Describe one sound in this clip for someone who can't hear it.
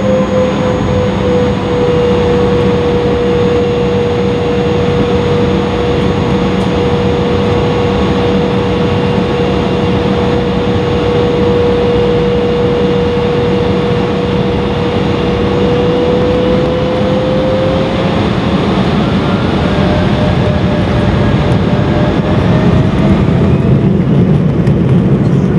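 Jet engines roar steadily with a droning whine that rises in pitch near the end.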